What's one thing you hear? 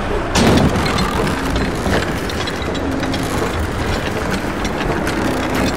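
A heavy hanging platform creaks and groans on its chains.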